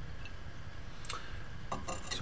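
A glass flask clinks down on a hard surface.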